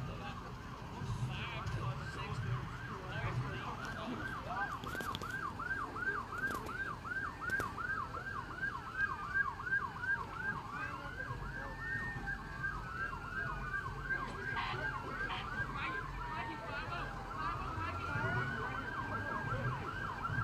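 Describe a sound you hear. A siren yelps rapidly and wails nearby.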